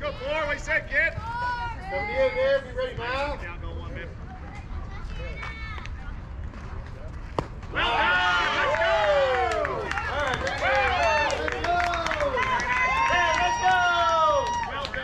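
Young girls shout and cheer excitedly outdoors.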